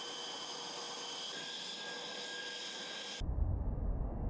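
Jet engines whine loudly and shrilly.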